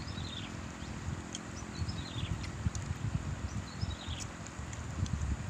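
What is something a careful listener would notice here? Two men chew food.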